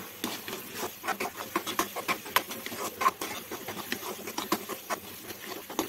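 A spatula scrapes and clatters against a frying pan while stirring food.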